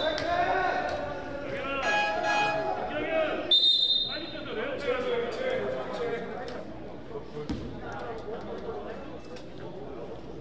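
Young players shout and call out to each other.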